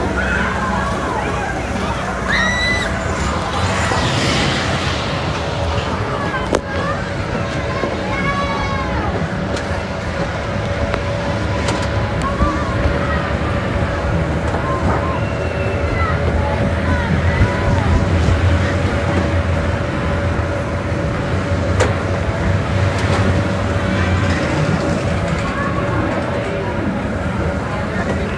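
A fairground ride rumbles and whirs steadily as it spins.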